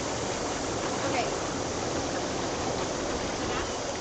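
Water splashes as someone moves in a hot tub.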